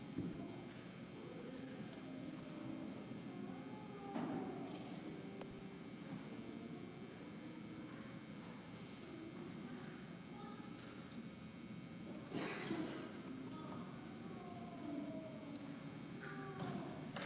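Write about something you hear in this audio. A man speaks calmly into a microphone, echoing through a large hall.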